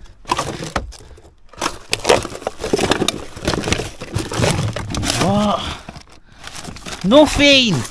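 Plastic bottles clatter and rustle as hands rummage through rubbish.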